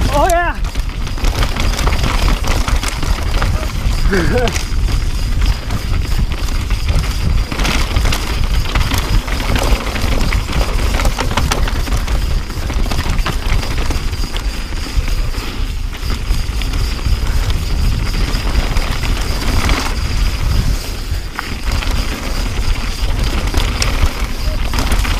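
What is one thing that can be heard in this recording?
Wind buffets loudly past the rider.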